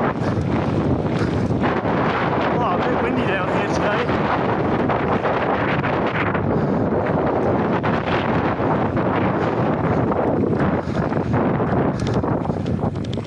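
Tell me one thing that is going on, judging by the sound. Bicycle tyres crunch and rumble over a rough dirt track.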